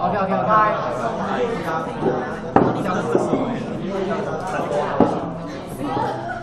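Young people chatter and laugh close by, with voices overlapping.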